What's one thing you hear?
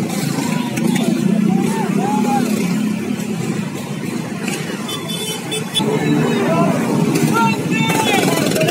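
A crowd of men shouts and chants outdoors.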